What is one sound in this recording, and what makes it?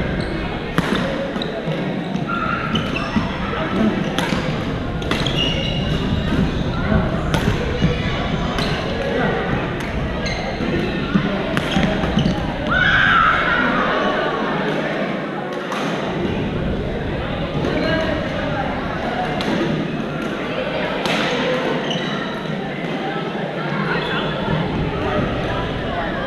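Pickleball paddles pop sharply against a plastic ball in a large echoing gym.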